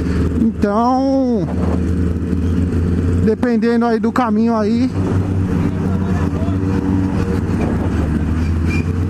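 A motorcycle engine runs steadily close by.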